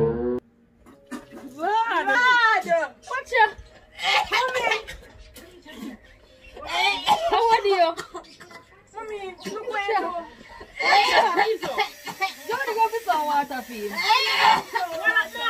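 Several women talk over each other excitedly.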